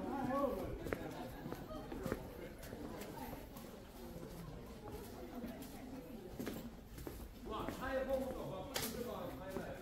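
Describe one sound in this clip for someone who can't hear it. Footsteps tap on stone paving close by.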